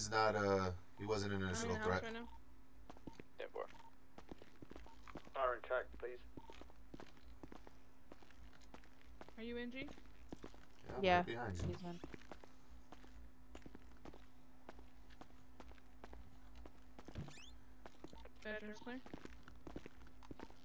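Footsteps tread softly on a hard floor.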